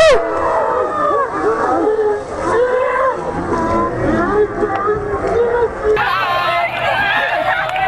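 Young men and women shout and laugh excitedly.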